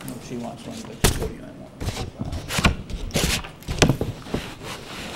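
Loud knocks and bumps sound on a microphone.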